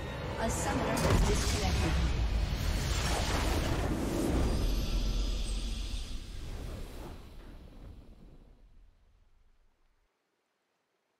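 A triumphant game fanfare swells and fades out.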